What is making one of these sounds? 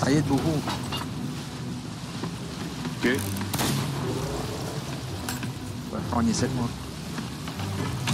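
Stormy sea waves crash and roar.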